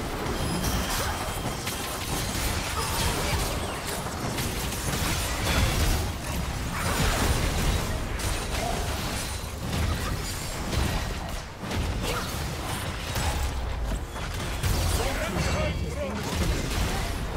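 Weapons clang and slash repeatedly.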